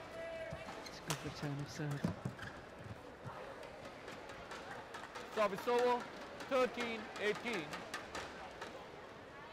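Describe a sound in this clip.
A large crowd cheers and claps in a big echoing hall.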